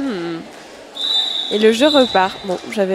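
A referee's whistle blows briefly in a large echoing hall.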